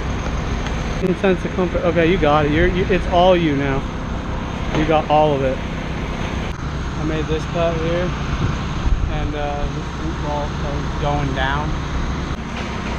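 A man talks close by, outdoors.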